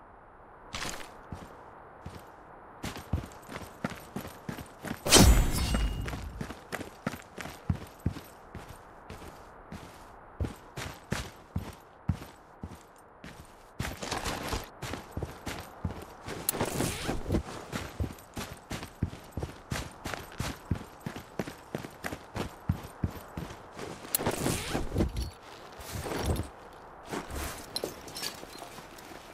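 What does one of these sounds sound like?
A young man talks now and then into a close microphone.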